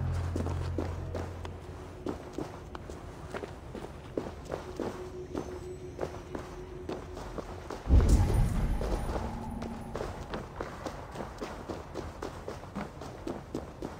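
Hands and feet scrape against stone while climbing.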